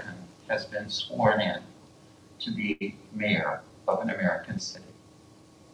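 A woman speaks calmly through a microphone.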